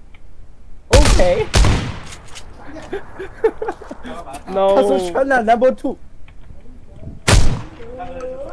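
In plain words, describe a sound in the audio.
Gunshots crack in quick bursts close by.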